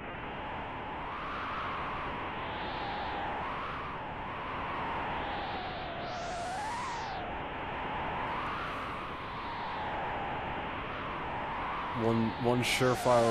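Soft, airy game music plays steadily.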